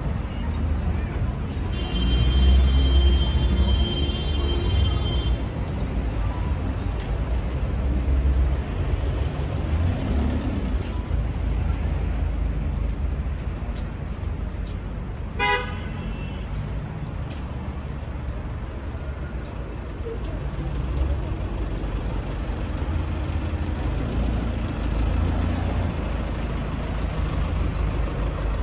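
Outdoor street noise with a low rumble of passing traffic fills the air.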